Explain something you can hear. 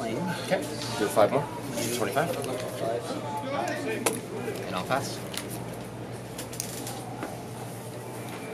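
Playing cards tap and slide on a mat.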